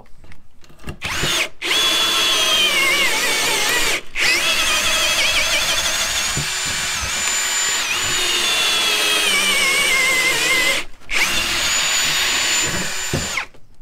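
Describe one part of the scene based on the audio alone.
A power drill whines loudly as it bores into wood, pausing briefly now and then.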